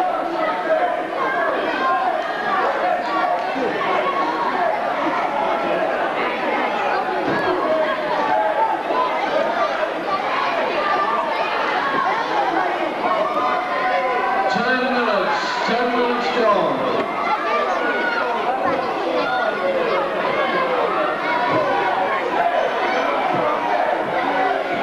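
A large crowd shouts and cheers loudly in an echoing hall.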